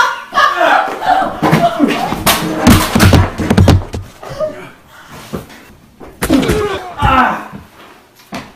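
A man shouts and grunts up close.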